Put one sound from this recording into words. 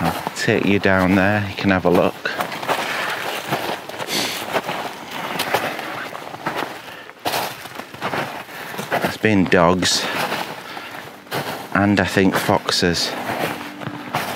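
Footsteps crunch on frosty snow.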